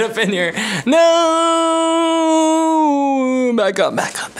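A young man sings a long, held note close to the microphone.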